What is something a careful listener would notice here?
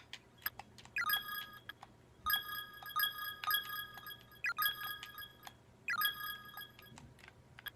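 Short electronic menu beeps chime in quick succession.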